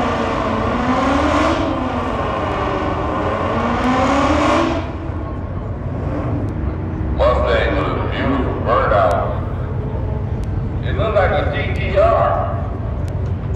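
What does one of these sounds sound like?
A car engine revs hard in loud, rising and falling bursts.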